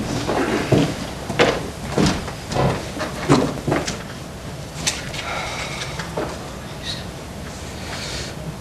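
A man speaks loudly and with animation in a small echoing room.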